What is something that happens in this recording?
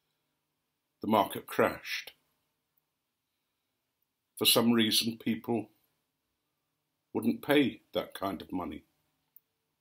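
An elderly man speaks calmly and slowly close by, with long pauses.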